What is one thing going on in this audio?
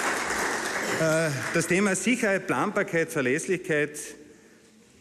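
A man speaks loudly into a microphone in a large echoing hall.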